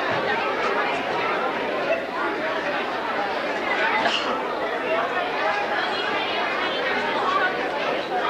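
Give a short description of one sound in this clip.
A crowd of children and adults chatter loudly in an echoing hall.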